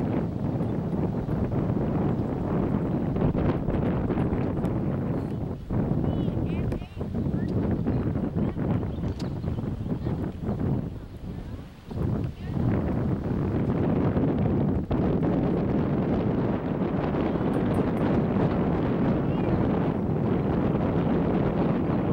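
Wind blows steadily outdoors, rumbling across the microphone.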